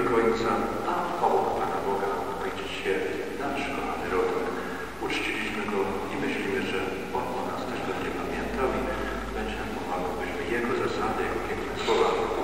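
A man speaks steadily through a microphone and loudspeakers, echoing in a large hall.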